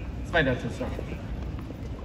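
A tennis ball is struck with a racket.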